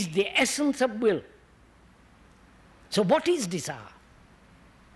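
An elderly man speaks calmly and slowly into a microphone, pausing between phrases.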